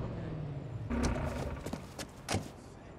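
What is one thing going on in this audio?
A car door opens with a click and a thud.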